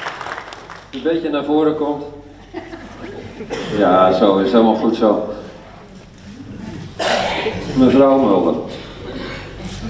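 An elderly man speaks calmly into a microphone over loudspeakers.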